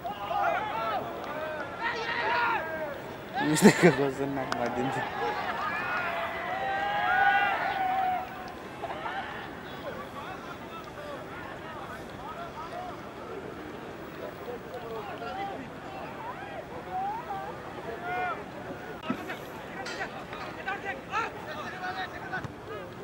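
Men shout and call out loudly across an open field outdoors.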